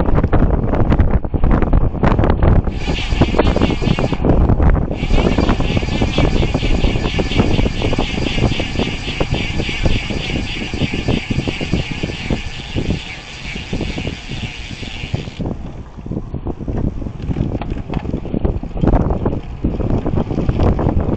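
Wind rushes loudly past a moving bicycle.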